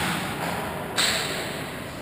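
A puck strikes a stick with a sharp crack.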